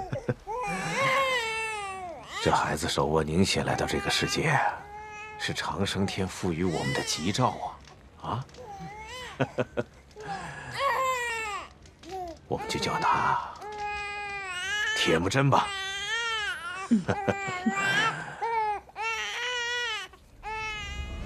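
A baby cries loudly.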